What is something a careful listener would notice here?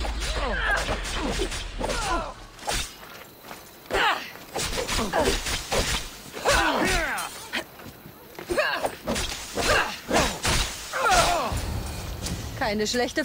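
Men grunt and shout while fighting.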